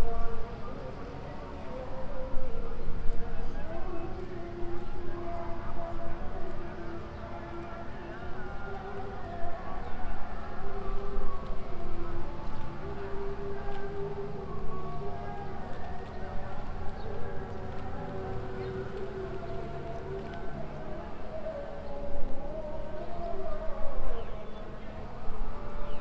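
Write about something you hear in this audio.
A group of men chant together in unison outdoors.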